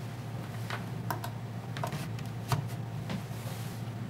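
A plug is pushed into a power strip socket with a click.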